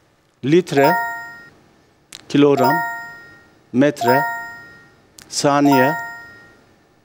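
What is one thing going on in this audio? A man calls out short words one at a time through a microphone.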